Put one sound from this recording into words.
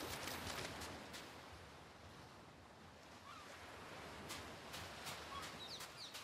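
Footsteps run over sand.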